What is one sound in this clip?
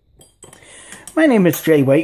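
A spoon clinks against a mug while stirring.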